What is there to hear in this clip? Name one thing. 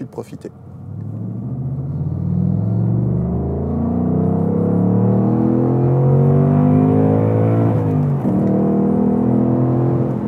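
A car engine drones steadily from inside the car, slowly rising.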